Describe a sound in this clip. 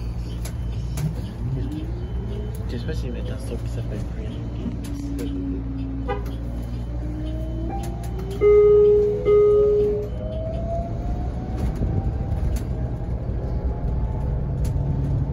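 A bus motor whines, rising slowly in pitch as the bus picks up speed.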